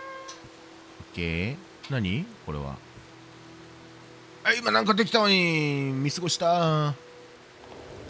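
A cat meows loudly several times, its voice rising and falling.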